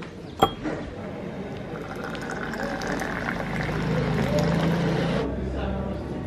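Tea pours in a steady stream into a glass, rising in pitch as it fills.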